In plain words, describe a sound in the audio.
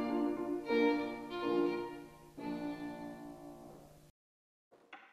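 A piano plays chords.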